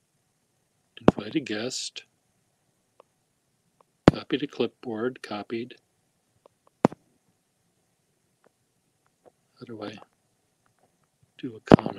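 A middle-aged man speaks in short bursts close to a phone microphone, heard as if over an online call.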